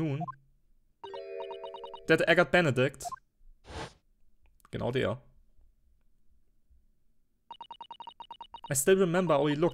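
Rapid electronic blips sound as game text scrolls.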